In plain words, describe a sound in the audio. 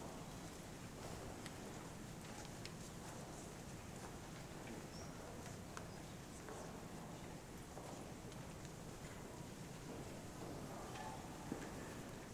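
People murmur quietly in a large echoing hall.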